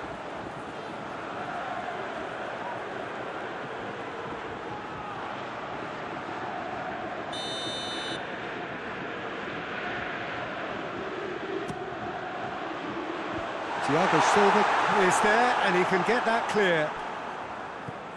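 A stadium crowd murmurs and roars steadily in the background.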